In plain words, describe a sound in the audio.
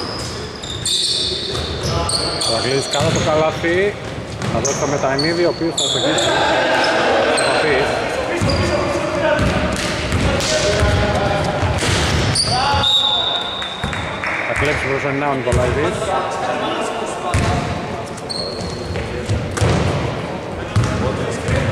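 Men shout and call out to each other during play.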